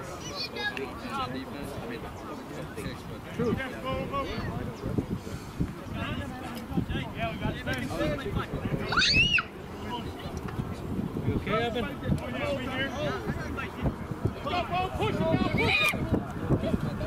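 Young men shout to one another outdoors during a game.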